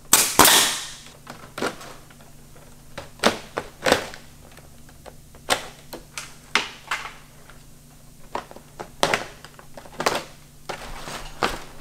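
Stiff plastic thatch rustles and crackles as it is handled.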